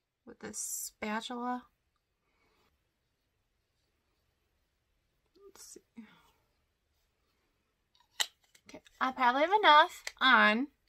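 A young woman speaks close to a microphone, softly and then with animation.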